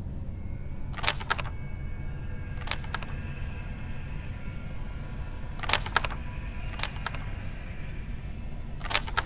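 Torn paper pieces snap into place with sharp clicks.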